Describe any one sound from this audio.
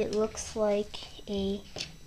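Metal hex keys clink against each other as a hand handles them.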